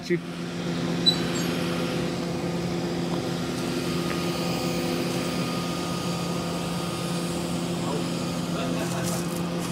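A crane engine hums steadily nearby.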